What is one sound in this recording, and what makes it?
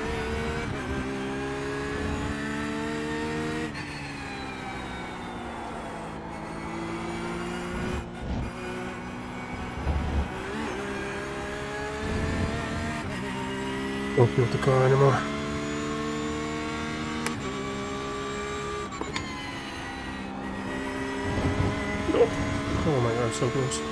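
A racing car engine roars, rising and falling in pitch as the car shifts gears.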